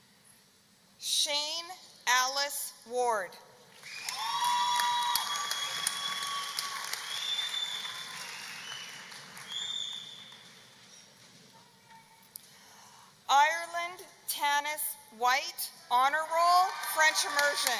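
A man reads out names through a loudspeaker in a large echoing hall.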